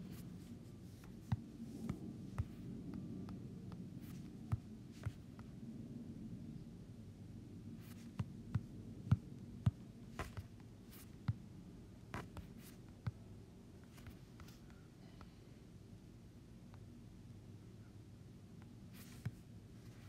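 Water flows steadily in a cave.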